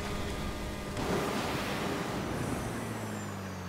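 A rocket thruster roars in a short burst.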